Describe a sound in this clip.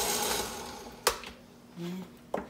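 A plastic lid pops off a blender jar.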